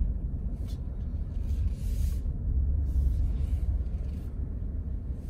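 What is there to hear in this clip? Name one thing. A car engine rumbles low and steady while driving slowly.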